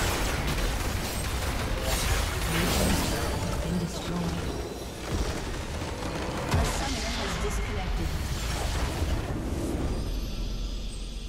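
Game spell effects crackle and boom in a busy battle.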